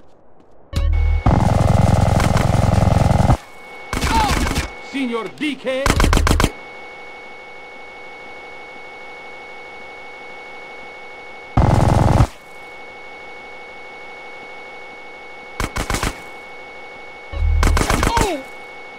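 Gunshots ring out in loud bursts.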